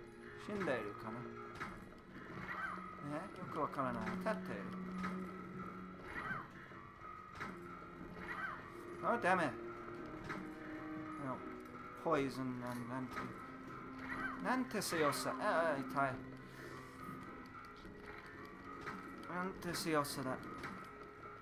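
A video game's music plays steadily.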